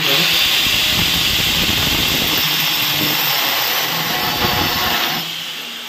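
An electric grinder whines loudly as a core bit grinds into stone.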